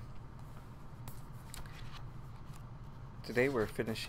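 Paper rustles and crinkles.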